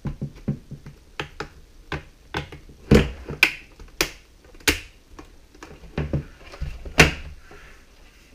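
A plastic keyboard knocks and rattles as hands turn it over and set it down.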